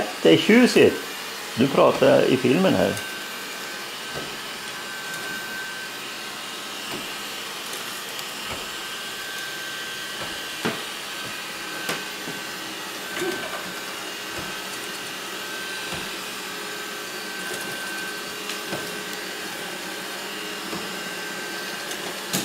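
A robot vacuum cleaner hums and whirs steadily as it moves across the floor.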